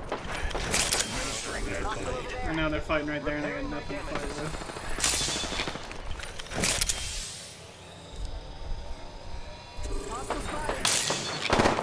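A syringe hisses and clicks as it injects.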